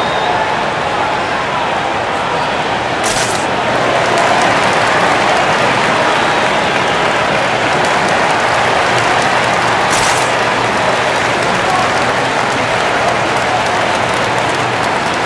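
A large arena crowd murmurs and cheers steadily.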